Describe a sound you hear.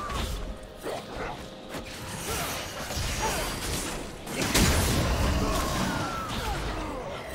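Magic blasts and sword strikes whoosh and crash in a fast fight, with a loud burst midway.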